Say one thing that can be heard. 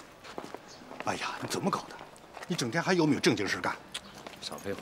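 An older man speaks sternly and scolds.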